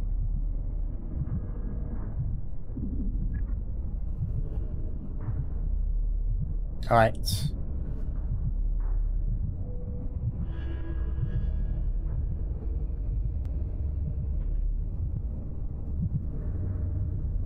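A low, dark game soundtrack rumbles steadily.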